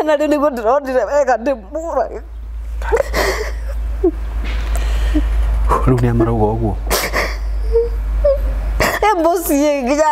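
A young woman speaks emotionally through a microphone.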